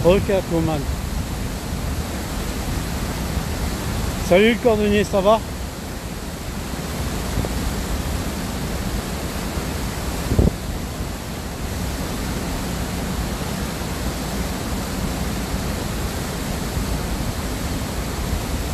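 Churning water rushes and foams steadily below.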